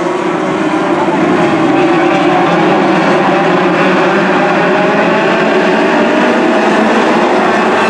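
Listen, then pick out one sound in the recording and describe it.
Racing car engines rise in pitch and grow louder as the cars speed up.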